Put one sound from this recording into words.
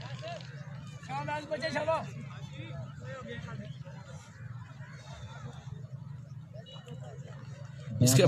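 Men chatter and call out at a distance outdoors.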